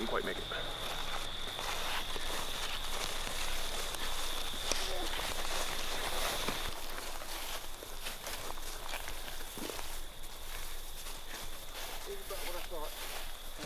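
Footsteps crunch through dry leaves and brush.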